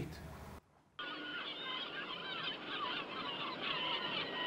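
Sea waves wash on a shore, heard through a television.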